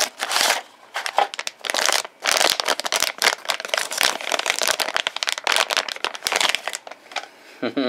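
A plastic bag crinkles and rustles loudly as it is handled.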